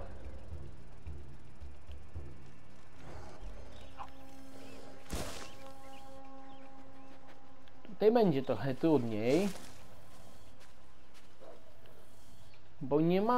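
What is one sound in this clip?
Footsteps scuff on rock and dry grass.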